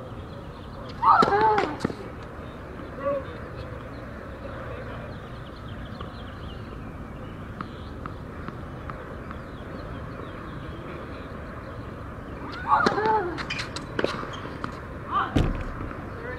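A racket strikes a tennis ball hard.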